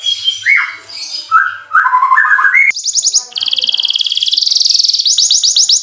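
A canary sings loudly and close by with whistles, rapid chirping trills and warbles.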